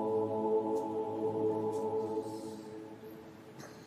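A man sings a long chanted note through loudspeakers in a wide open space, then falls silent.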